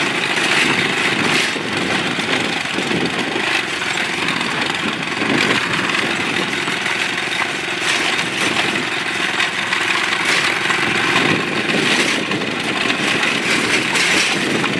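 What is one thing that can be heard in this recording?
Tyres crunch over a gravel road.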